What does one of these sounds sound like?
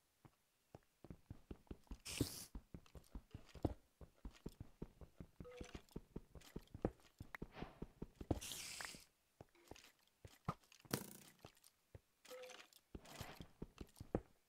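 A pickaxe chips rapidly at stone, with repeated knocking blows.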